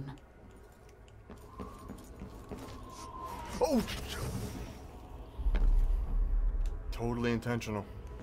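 Rocks crash and crumble.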